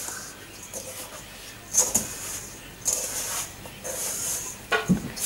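Hands knead crumbly dough in a metal bowl, with soft rustling and scraping.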